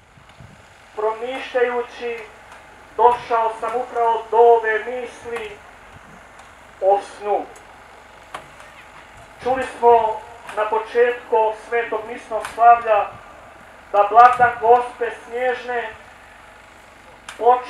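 A man speaks through a loudspeaker outdoors, in slow, measured phrases.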